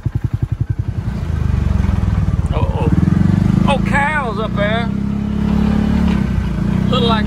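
A utility vehicle drives over grass with a steady engine rumble.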